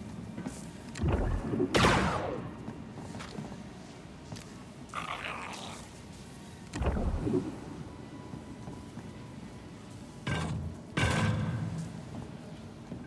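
Heavy rumbling blasts and whooshes boom in bursts.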